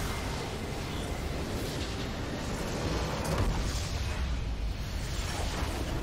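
A game base structure explodes with a deep blast.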